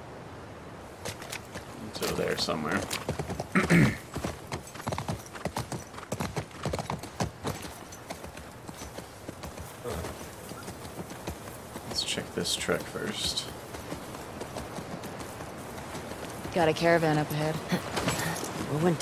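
Horse hooves clop steadily on the ground.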